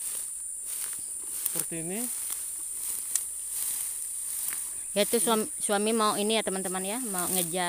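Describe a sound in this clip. Leafy plants rustle as someone walks through them.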